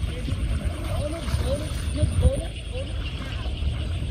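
Children splash in water.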